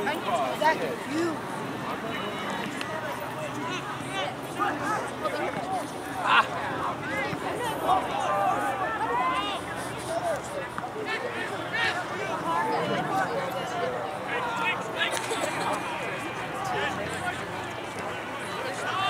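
A crowd of spectators chatters and calls out outdoors.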